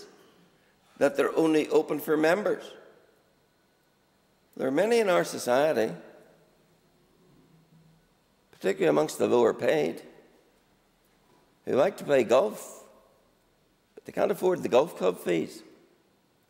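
An elderly man speaks deliberately into a microphone, in short phrases with pauses.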